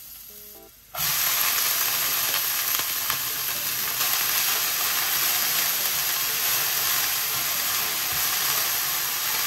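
Shredded cabbage fries loudly with a steady hiss in a pan.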